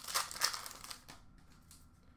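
Plastic card wrappers rustle and crinkle as hands handle them.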